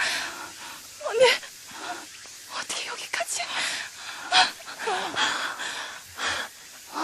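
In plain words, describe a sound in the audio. A young woman speaks tearfully and pleads.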